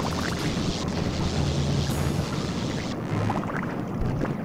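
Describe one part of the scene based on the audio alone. Bubbles burble and pop underwater.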